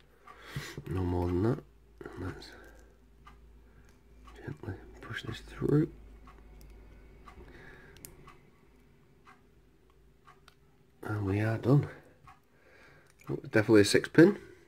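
Small metal lock parts click and scrape.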